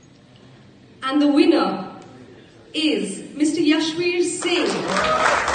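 A woman speaks loudly through a microphone over loudspeakers in a large room.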